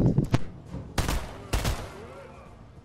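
A gun fires two loud shots.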